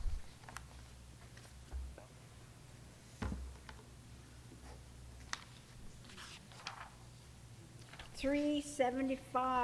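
Paper rustles as a woman handles sheets.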